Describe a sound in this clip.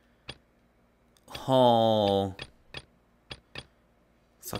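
Soft menu clicks sound in short bursts.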